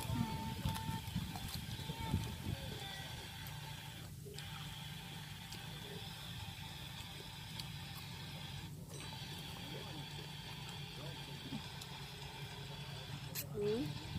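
A young woman chews food close to the microphone.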